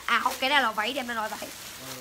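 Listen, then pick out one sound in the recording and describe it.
A plastic wrapping crinkles under handling.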